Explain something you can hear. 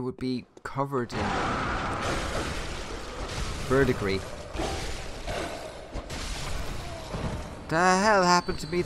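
A blade slashes and strikes in a fight.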